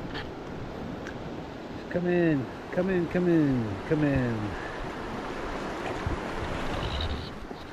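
A shallow river rushes steadily over stones.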